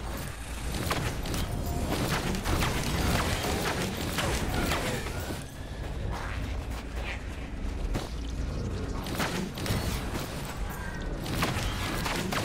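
A bow twangs, firing arrows again and again.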